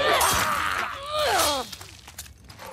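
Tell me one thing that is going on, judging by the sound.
A creature lets out loud, rasping shrieks that bend up and down.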